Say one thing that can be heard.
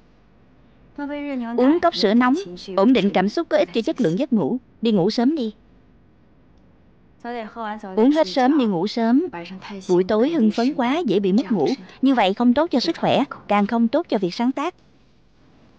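A young woman speaks warmly and brightly, close by.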